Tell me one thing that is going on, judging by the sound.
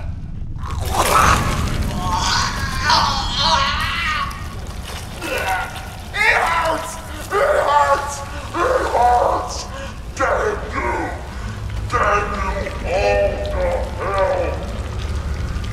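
A young woman talks into a microphone with animation.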